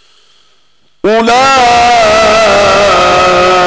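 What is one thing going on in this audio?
An elderly man chants in a long, drawn-out voice through a microphone.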